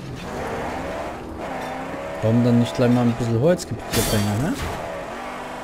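A car engine roars and revs unevenly.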